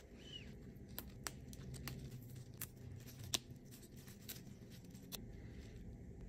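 Stems snap as leaves are picked off.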